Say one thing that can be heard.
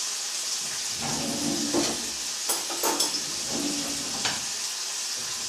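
Cutlery clinks and rattles in a drawer.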